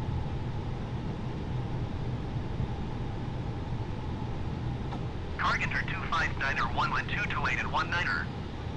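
Jet engines rumble steadily.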